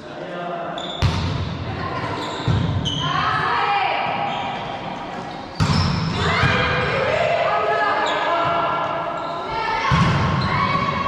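A volleyball is struck with loud slaps that echo through a large hall.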